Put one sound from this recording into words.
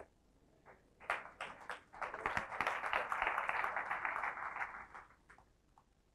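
A large audience claps.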